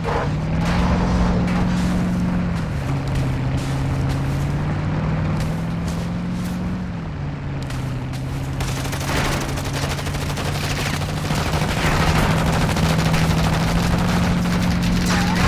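A truck engine drones steadily, its pitch shifting between gears.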